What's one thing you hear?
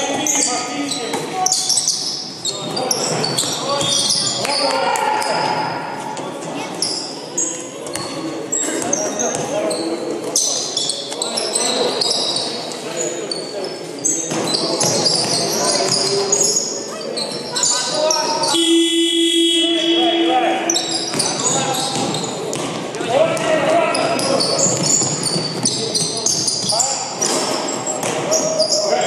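Men shout and call out to each other across the hall.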